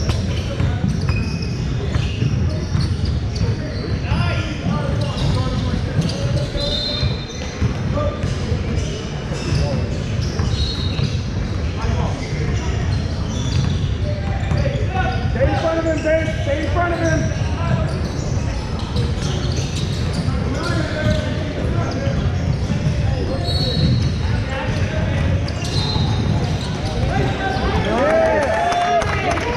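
Young players call out to each other across a large echoing hall.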